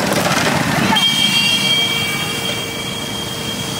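Motorcycle engines rumble close by.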